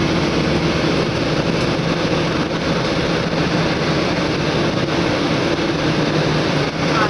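A vehicle's engine hums steadily from inside the cabin.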